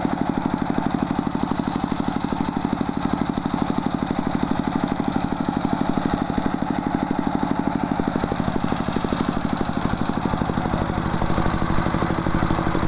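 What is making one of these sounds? A small diesel engine runs steadily with a fast, even chugging close by.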